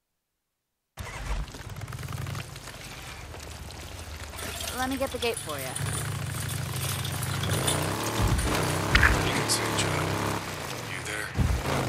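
A motorcycle engine rumbles steadily as it rides along.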